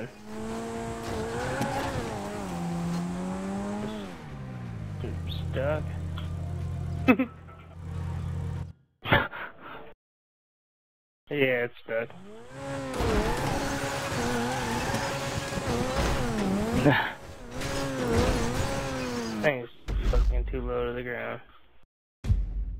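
A racing car engine revs and roars, rising and falling in pitch.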